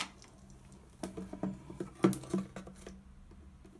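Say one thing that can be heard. A plastic soap bottle knocks against a hard surface.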